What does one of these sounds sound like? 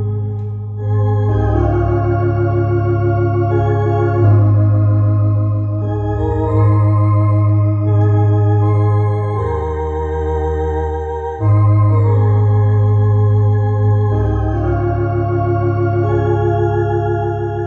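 An electric organ plays sustained chords with a steady bass line.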